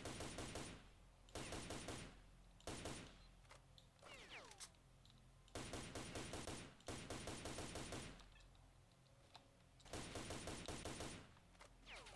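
A rifle fires loud rapid bursts.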